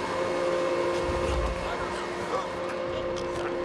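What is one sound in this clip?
A man grunts and chokes in a struggle.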